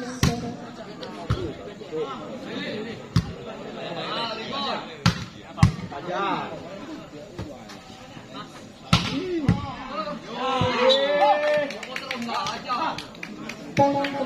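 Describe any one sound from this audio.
A volleyball is hit with sharp slaps outdoors.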